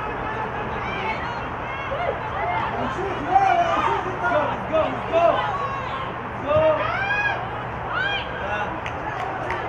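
Young women shout and call out across an open pitch.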